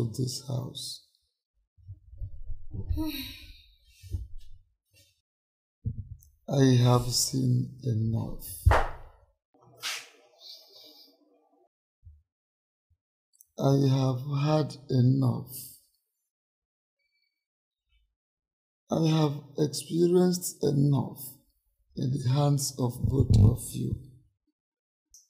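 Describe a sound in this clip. An older man speaks calmly and earnestly, close by.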